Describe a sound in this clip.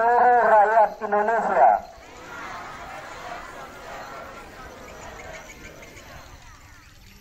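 A man speaks firmly through a loudspeaker outdoors, his voice echoing.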